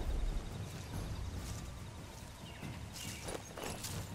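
Footsteps crunch on dry grass and dirt.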